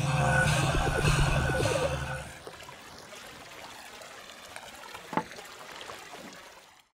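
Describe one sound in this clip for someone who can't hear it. Water splashes and pours steadily into a pool.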